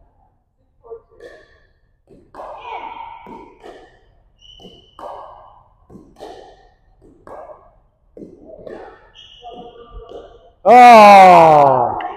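Paddles tap a ball back and forth.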